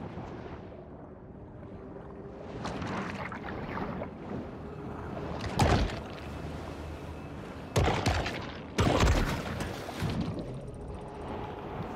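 Water bubbles and gurgles as a creature swims underwater.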